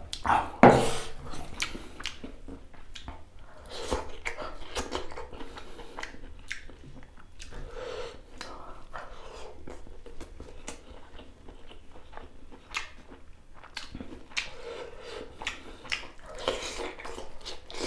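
A man chews food with wet, smacking sounds, close to the microphone.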